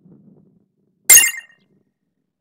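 A bright chime rings out once.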